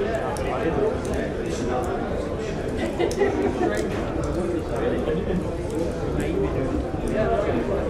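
A crowd of men and women chatter and talk over one another.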